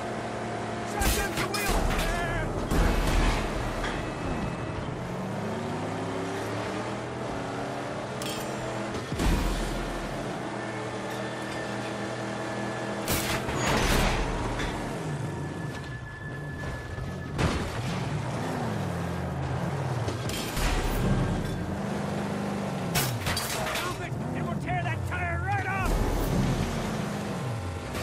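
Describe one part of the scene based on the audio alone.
Cars crash with loud metal impacts.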